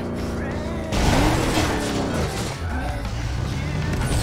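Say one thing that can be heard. Tyres screech as a car brakes hard.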